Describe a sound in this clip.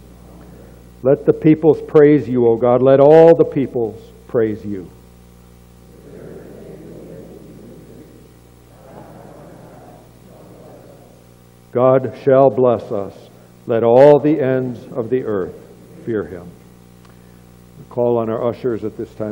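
An older man speaks calmly into a microphone, with pauses, in a room with some echo.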